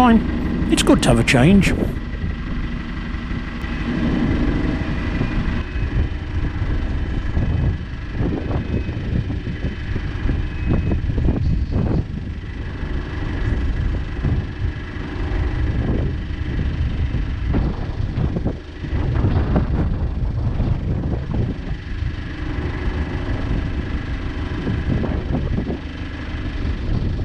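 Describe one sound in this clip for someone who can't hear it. A boat's engine chugs steadily close by.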